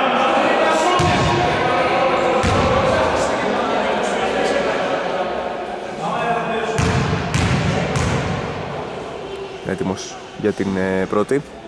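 A basketball bounces with dull thuds in a large echoing hall.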